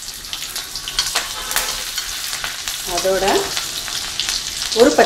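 Batter sizzles and crackles in hot oil.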